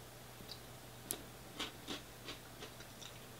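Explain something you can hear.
A man sips and gulps a drink from a can.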